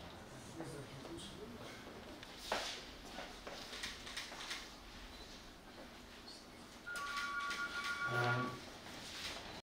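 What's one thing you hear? A crowd of men and women murmurs and chatters quietly in a room.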